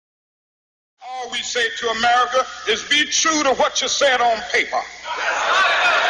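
A man speaks forcefully into a microphone, heard through loudspeakers.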